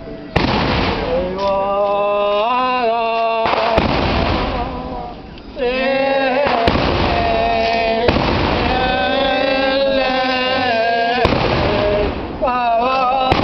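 A man chants a prayer in a loud, sung voice.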